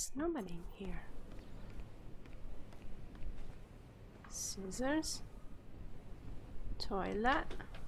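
Footsteps tap across a wooden floor.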